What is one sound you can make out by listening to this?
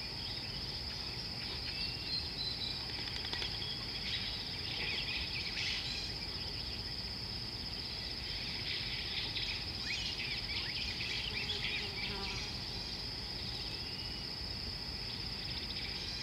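A hippo tears and chews grass close by.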